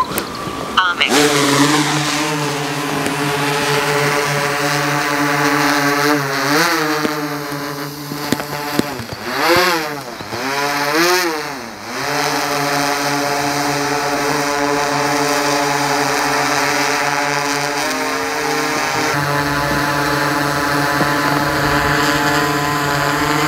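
A drone's rotors whir loudly, rising and falling in pitch as it flies.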